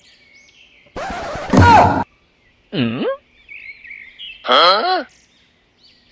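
A young man shouts out loudly nearby.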